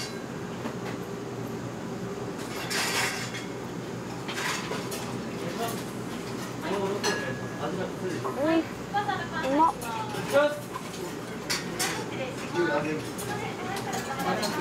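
People chatter in the background of a busy room.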